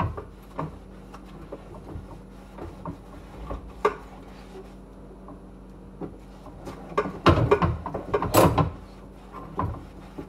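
Dishes clink and knock close by.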